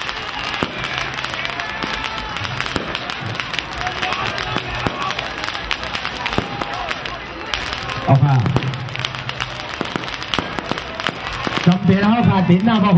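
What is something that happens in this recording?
A large outdoor crowd cheers and chatters.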